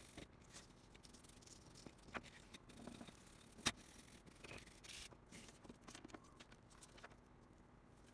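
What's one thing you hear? Circuit boards and parts clack and knock as they are handled.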